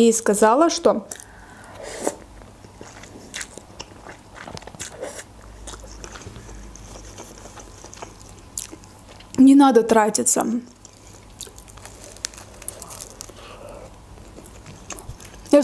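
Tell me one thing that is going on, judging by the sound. A young woman chews food with wet, crunchy sounds close to a microphone.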